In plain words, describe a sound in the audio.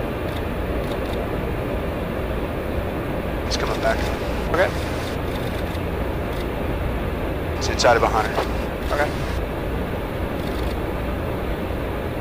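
A steady low roar of jet engines drones through an aircraft in flight.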